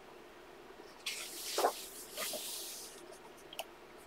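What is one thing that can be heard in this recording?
A paper page turns with a soft rustle.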